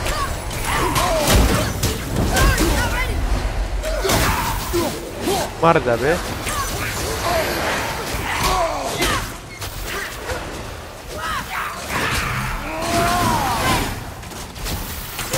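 A heavy axe slashes and strikes with sharp impacts.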